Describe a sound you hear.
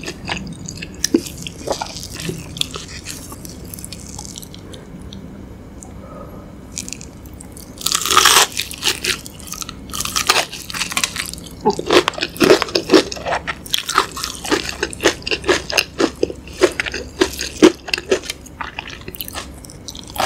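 Gloved fingers squish and pick up soft rice.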